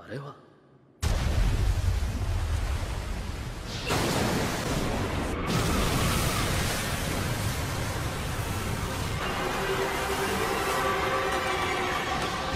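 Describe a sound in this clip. A powerful wind roars and rushes steadily.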